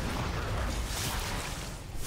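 Lightning zaps with a sharp crackle.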